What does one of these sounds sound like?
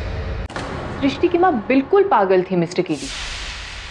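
A woman speaks sharply and with animation, close by.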